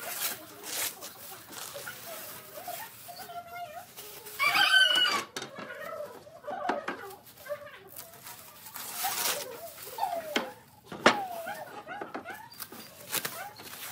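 Protective plastic film crinkles as it is peeled off glass.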